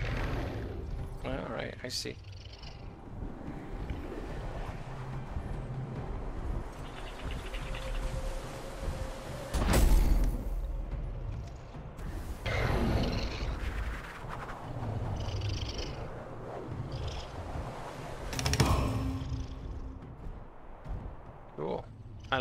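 Wind rushes and whooshes as a dragon flies.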